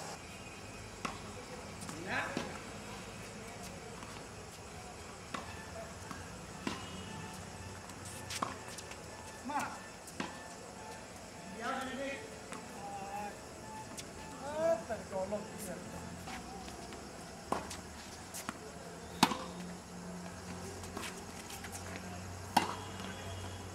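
Tennis balls are struck with rackets, each hit a sharp pop.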